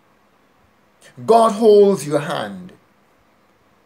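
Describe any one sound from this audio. A middle-aged man speaks briefly and with animation into a close microphone, as on an online call.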